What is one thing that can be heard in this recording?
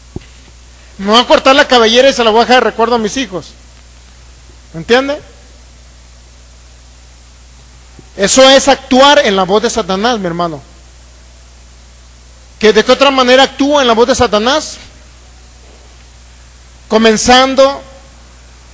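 A man sings into a microphone through loudspeakers, in bursts with pauses.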